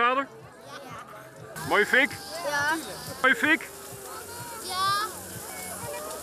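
Young children talk excitedly, close to a microphone.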